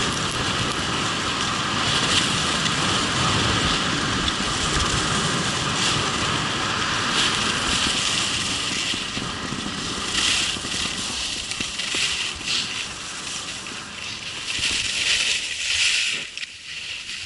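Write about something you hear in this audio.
Wind rushes loudly past close by, outdoors.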